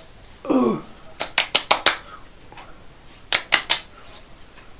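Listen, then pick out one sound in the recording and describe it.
An elderly man pats his chin and neck with his hand in quick taps.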